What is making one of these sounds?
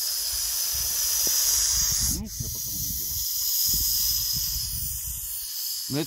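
A snake hisses close by.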